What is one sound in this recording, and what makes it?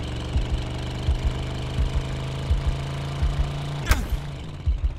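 A car engine hums steadily, then cuts off.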